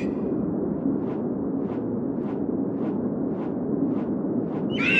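An eagle's wings flap in a steady rhythm.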